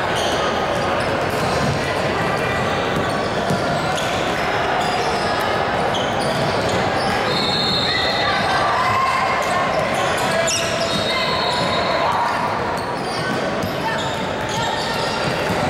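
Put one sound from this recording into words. Young players shout and call out in a large echoing gym.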